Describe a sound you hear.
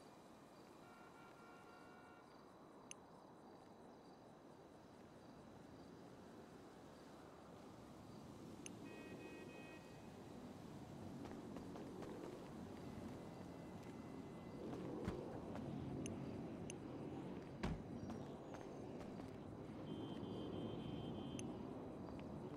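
Short electronic chimes ring out several times.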